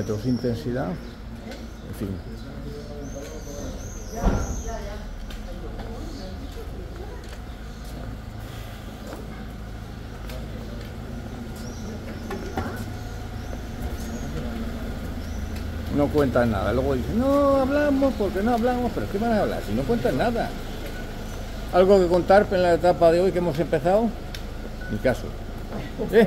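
Footsteps and trekking poles tap on a cobbled street.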